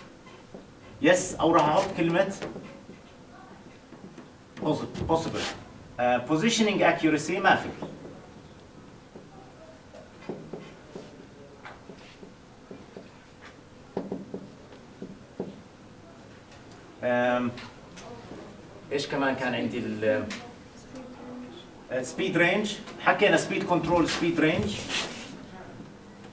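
A man speaks calmly in a lecture, close by.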